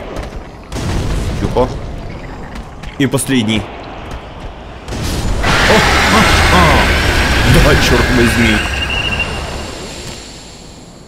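Firebombs burst with a roaring whoosh of flames.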